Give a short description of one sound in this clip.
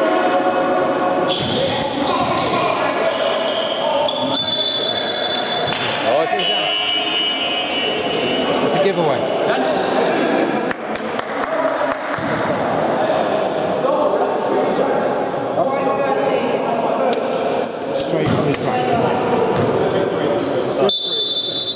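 Sneakers squeak sharply on a hard floor, echoing in a large hall.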